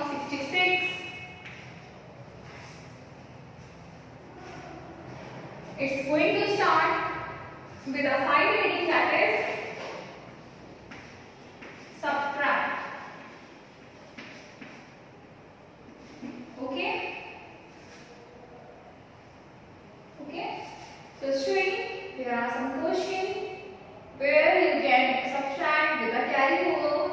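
A woman speaks clearly and calmly, as if teaching, close by.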